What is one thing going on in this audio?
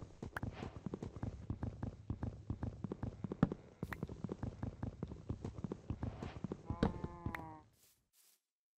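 Wood is knocked with quick, steady hollow taps.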